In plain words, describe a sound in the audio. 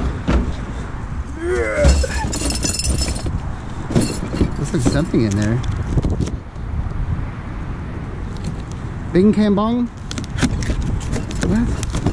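A cardboard box rustles and scrapes as hands handle it.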